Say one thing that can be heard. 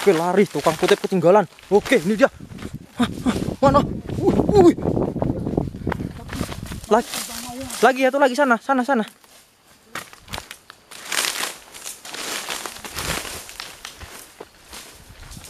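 Footsteps run over dry ground and grass.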